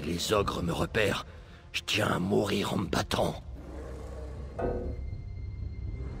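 A man speaks gruffly and with strain, close up.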